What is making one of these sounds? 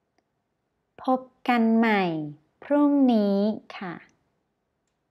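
A young woman speaks clearly and slowly into a close microphone.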